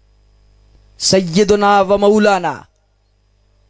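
A man chants in a long, sustained singing voice through a microphone and loudspeakers.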